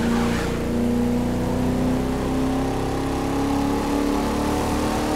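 A car engine hums steadily, rising slowly in pitch as the car speeds up.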